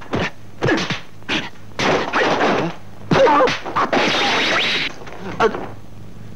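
Punches and kicks whoosh through the air and land with thuds.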